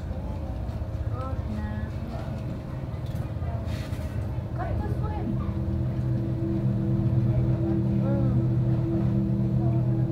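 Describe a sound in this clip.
An aquarium pump hums low and steadily.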